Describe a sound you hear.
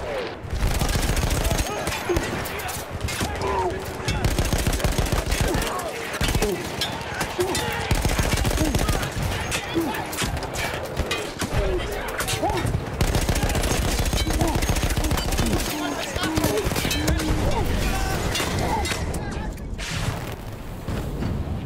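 A heavy machine gun fires in long, rapid bursts close by.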